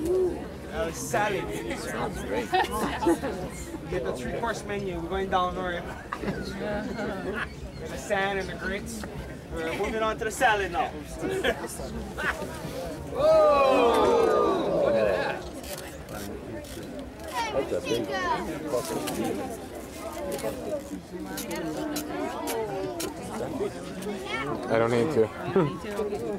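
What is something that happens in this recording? Men pull leaves and sacking off a cooking pit with a rustle.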